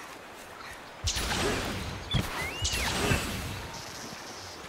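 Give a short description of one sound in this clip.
A sharp whoosh and rushing swish sweep past.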